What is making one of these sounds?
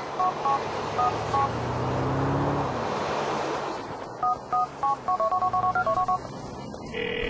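Phone keys beep quickly as a number is dialled.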